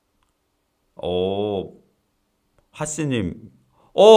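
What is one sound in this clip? A young man speaks into a close microphone in short, calm phrases.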